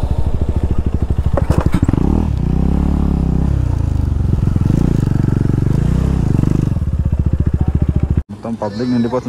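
A motorcycle engine roars and revs up and down close by.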